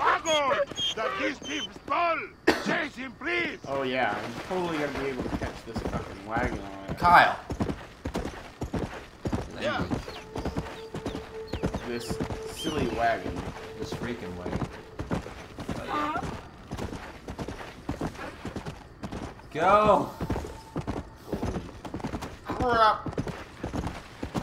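A horse's hooves thud steadily on a dirt track.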